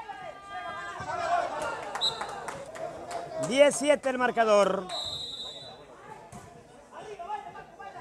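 A crowd of young men shouts and cheers loudly outdoors.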